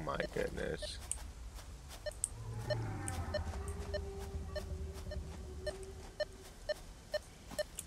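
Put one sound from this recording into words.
A handheld metal detector ticks and beeps in short, regular pulses.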